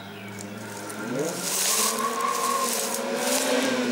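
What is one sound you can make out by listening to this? A rally car engine roars and revs hard as it draws closer.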